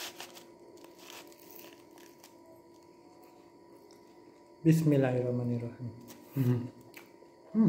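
A young man bites and chews food.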